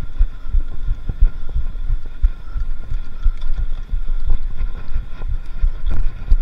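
A bicycle chain whirs steadily.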